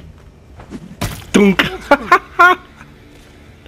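A body falls and thuds onto a hard floor.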